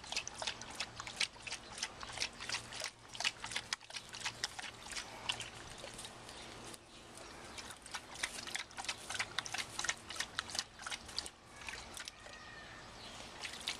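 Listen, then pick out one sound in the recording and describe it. A dog laps water noisily.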